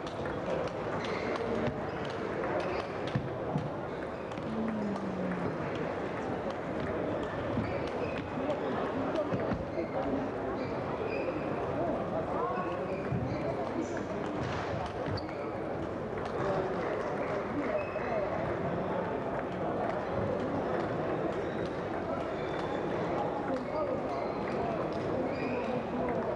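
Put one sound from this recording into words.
Ping-pong balls click sharply on tables and paddles in a large echoing hall.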